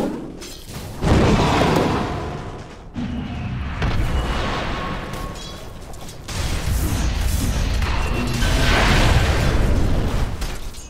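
Spells burst and crackle in a fight.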